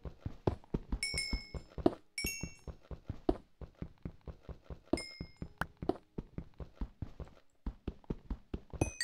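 Small items pop with bright, short tones as they are picked up.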